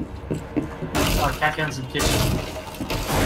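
Wooden boards crack and splinter as they are smashed.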